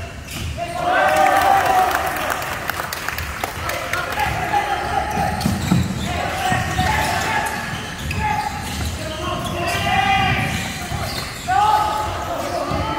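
A basketball bounces with dull thuds on a wooden floor.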